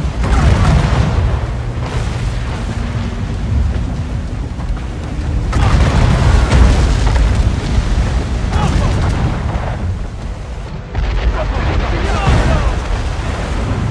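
Cannons fire and shells explode with deep booms.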